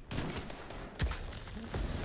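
A rifle shot cracks.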